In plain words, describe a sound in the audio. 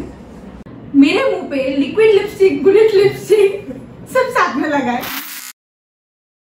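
Several young women laugh loudly together.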